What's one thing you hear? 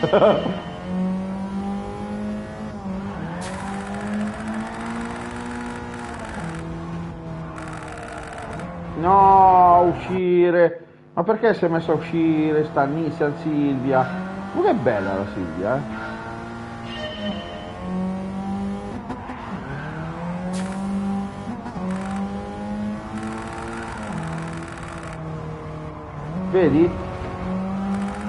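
A car engine roars and revs up and down through gear changes.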